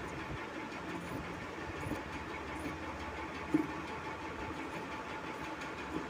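Scissors snip through cloth.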